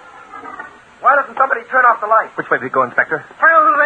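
A man speaks with animation, heard through an old radio recording.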